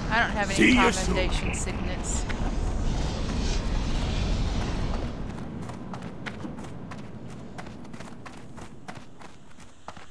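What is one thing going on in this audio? Footsteps tap steadily on a hard stone floor.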